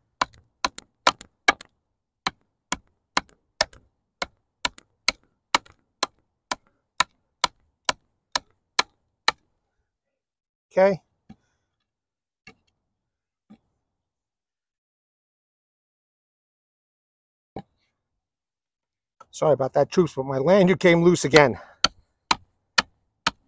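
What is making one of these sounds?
A blade chops into wood with sharp, regular knocks.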